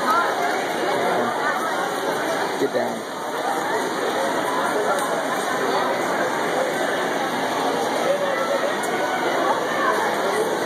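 A crowd chatters and cheers, echoing in a large indoor hall.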